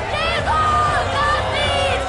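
A woman screams in anguish.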